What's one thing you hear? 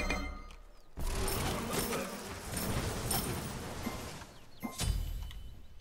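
Game sound effects whoosh and blast.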